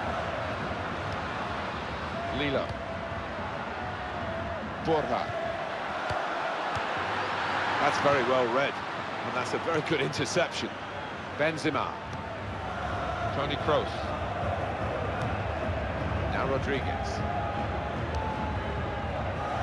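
A large stadium crowd murmurs and roars steadily.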